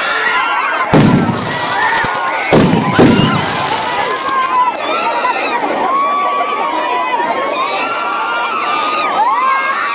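A crowd of young men cheers and shouts close by, outdoors.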